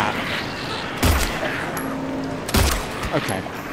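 Gunshots bang sharply.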